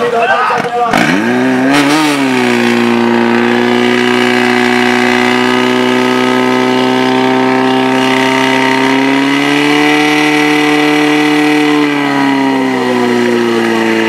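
A portable fire pump engine starts and runs at full throttle.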